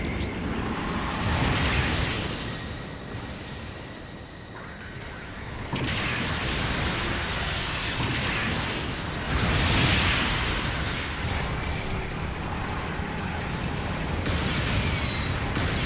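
A robot's jet thrusters roar in loud bursts.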